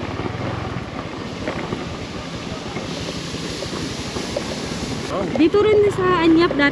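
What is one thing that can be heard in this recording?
Tyres crunch over a rough dirt road.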